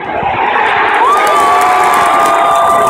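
A huge crowd roars and cheers loudly.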